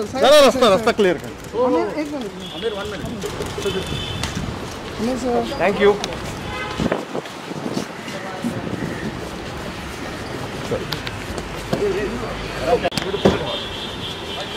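Several men call out loudly close by.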